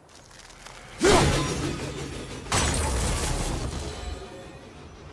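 An axe whooshes through the air and strikes a flying bird with a burst.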